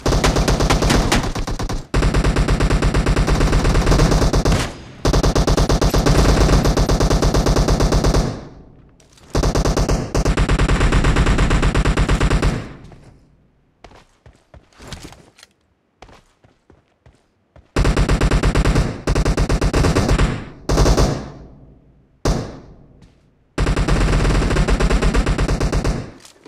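A rifle fires in rapid, loud bursts.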